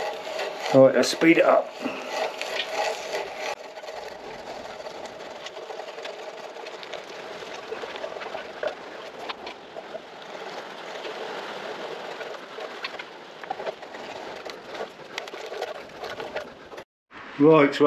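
A hand brace auger grinds and scrapes steadily through wood.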